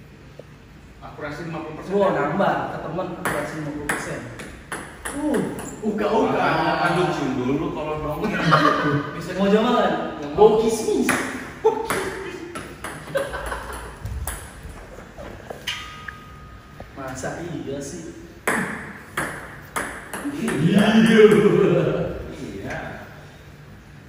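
Young men laugh and talk with animation close by.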